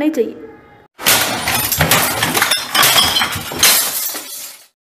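A keyboard smashes repeatedly against a desk with loud cracks and clatter.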